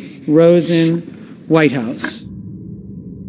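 A man calls out loudly through a microphone in a large hall.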